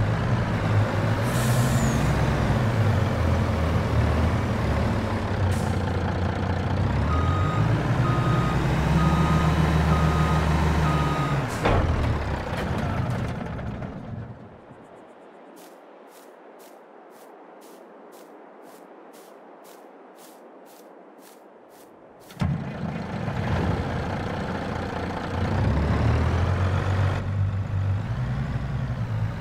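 A truck's diesel engine rumbles deeply as it idles.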